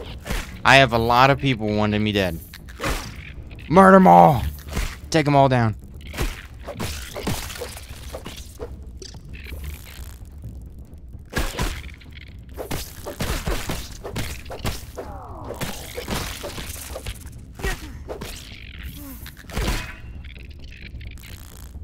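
A club thuds and smacks repeatedly against giant ants.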